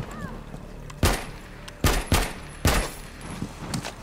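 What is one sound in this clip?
Gunshots crack in quick single bursts.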